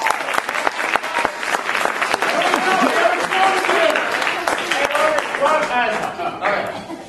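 Performers clap their hands rapidly.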